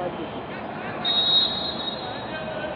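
A referee's whistle blows one long blast.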